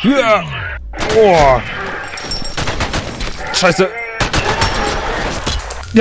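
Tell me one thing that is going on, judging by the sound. Rifles fire in rapid bursts, loud and echoing.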